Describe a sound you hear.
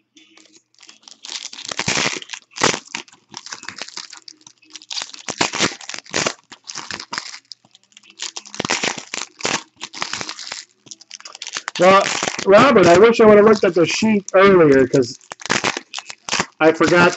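Foil card wrappers crinkle and rustle close by as they are torn open by hand.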